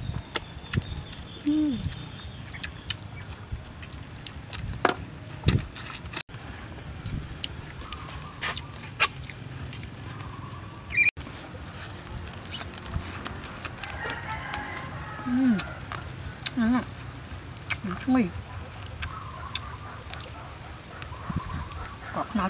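Food crunches and smacks as a young woman chews.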